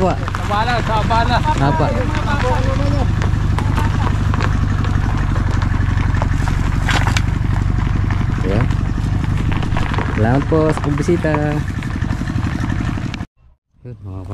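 An idling car engine hums steadily.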